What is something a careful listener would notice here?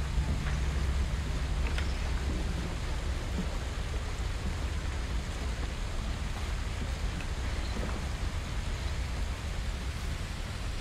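Fires crackle softly nearby.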